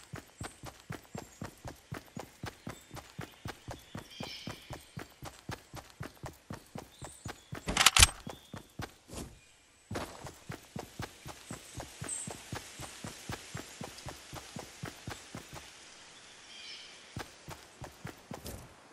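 Footsteps thud quickly and steadily on grass and dirt.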